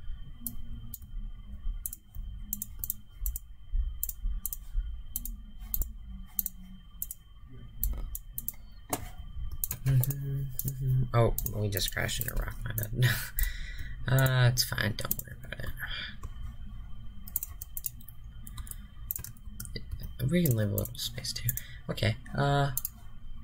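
Menu buttons click softly, again and again.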